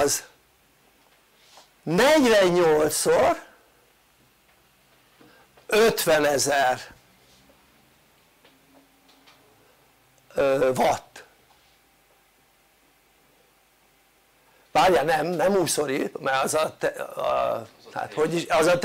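An elderly man speaks with animation, close by, in short bursts with pauses.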